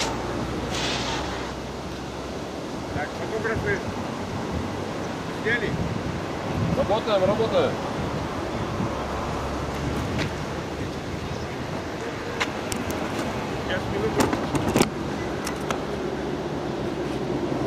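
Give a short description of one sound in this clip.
Wind blows steadily outdoors with a low rumble.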